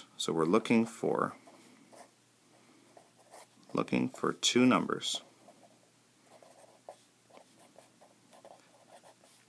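A felt-tip marker squeaks and scratches softly on paper.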